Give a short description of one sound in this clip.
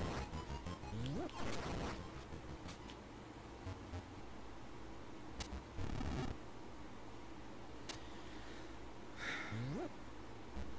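Short rising electronic chirps from a video game sound now and then.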